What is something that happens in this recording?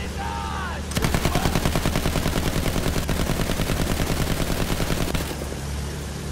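A drum-fed machine gun fires in rapid bursts.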